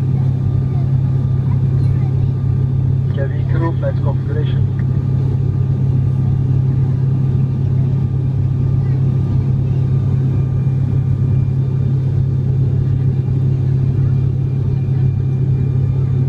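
An airplane engine drones steadily in the cabin.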